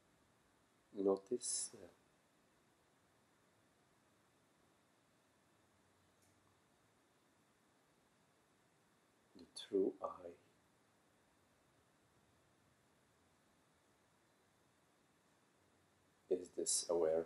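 A middle-aged man speaks calmly in short bursts, close by.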